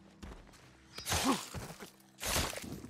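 A man groans in pain as he is struck down.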